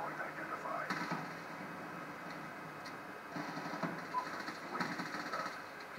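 Handgun shots fire in a video game, heard through a television speaker.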